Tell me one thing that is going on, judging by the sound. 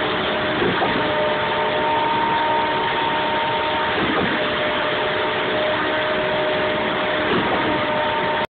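A concrete pump's engine drones steadily nearby.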